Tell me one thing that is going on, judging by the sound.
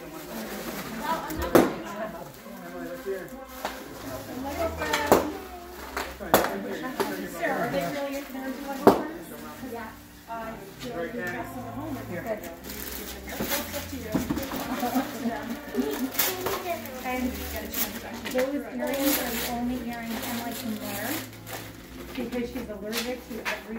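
Several children chatter and exclaim close by.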